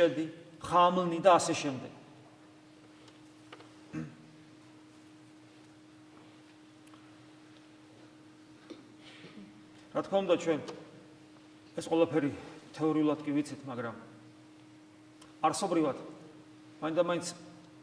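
A middle-aged man speaks calmly and deliberately into a nearby microphone, with long pauses.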